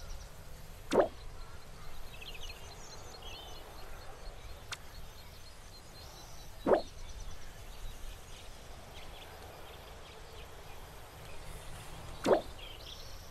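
A short game blip sounds each time the dialogue moves on.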